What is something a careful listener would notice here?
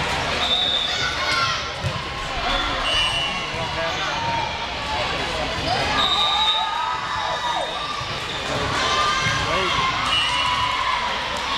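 A crowd of young women chatters and calls out in a large echoing gym.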